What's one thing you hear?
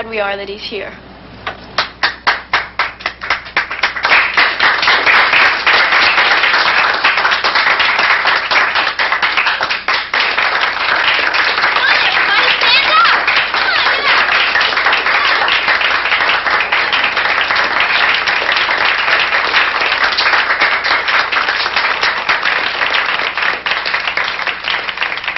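A young woman claps her hands.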